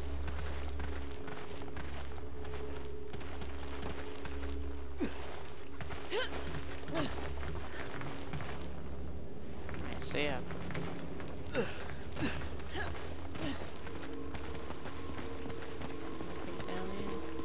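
A young woman talks quietly into a headset microphone.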